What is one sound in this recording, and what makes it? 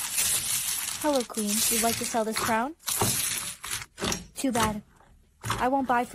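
A young woman speaks close to the microphone, with animation.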